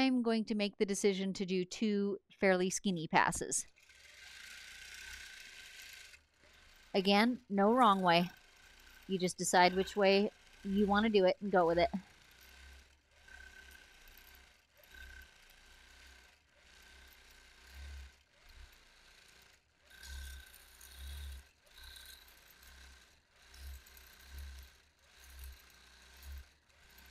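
A quilting machine whirs steadily as it stitches.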